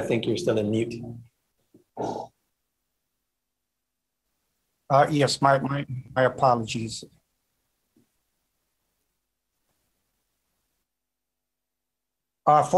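A middle-aged man speaks calmly through an online call, with pauses.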